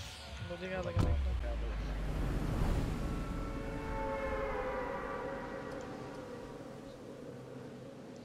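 Wind rushes loudly past during a fall through the air and slowly fades.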